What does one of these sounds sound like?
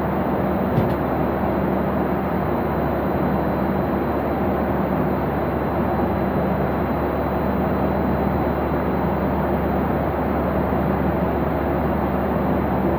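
A jet airliner's engines roar steadily inside the cabin.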